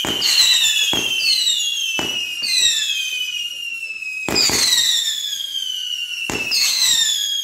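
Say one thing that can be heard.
Fireworks bang sharply.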